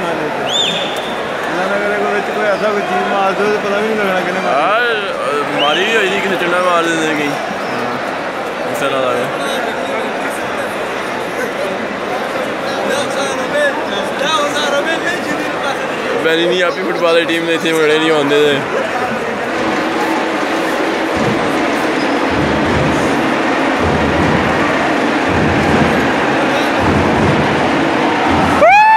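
A large stadium crowd cheers and roars all around, echoing in the open air.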